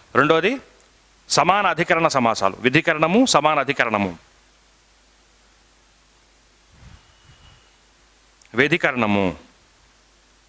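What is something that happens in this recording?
A man speaks with animation into a headset microphone, close by.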